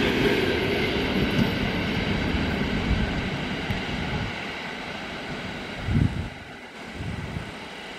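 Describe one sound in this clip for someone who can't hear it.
An approaching electric train hums softly in the distance.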